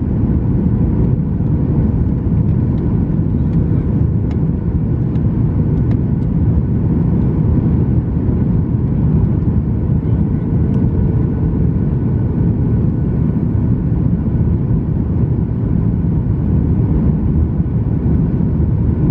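Jet engines roar with a steady, deep drone inside an airliner cabin in flight.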